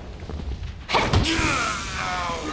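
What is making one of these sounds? A blow lands with a heavy thud.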